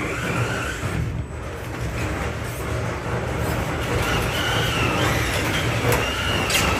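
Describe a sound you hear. A small electric motor whines, rising and falling as a toy truck drives.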